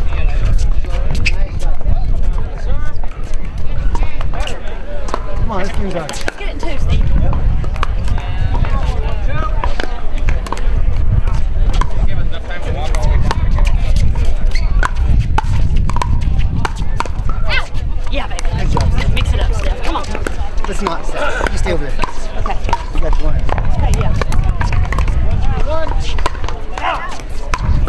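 Paddles knock a plastic ball back and forth in sharp pops.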